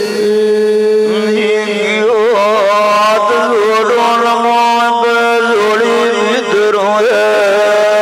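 A man sings loudly through a microphone, with wavering ornamented notes.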